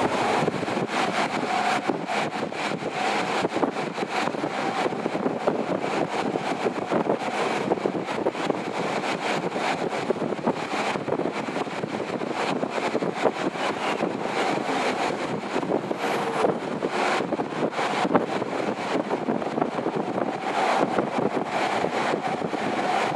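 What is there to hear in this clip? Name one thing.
Traffic rushes steadily past on a highway.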